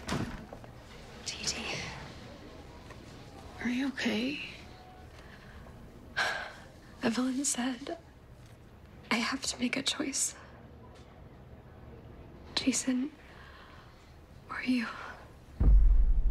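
A young woman speaks quietly and tearfully, close by.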